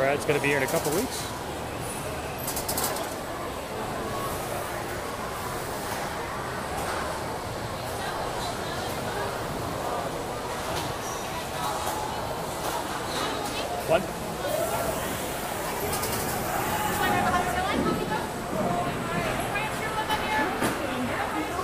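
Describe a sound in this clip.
A crowd of people chatters nearby in an open, echoing space.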